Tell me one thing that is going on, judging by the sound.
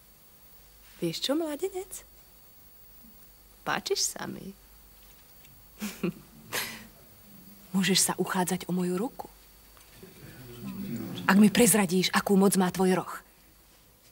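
A woman speaks close by, calmly and warmly.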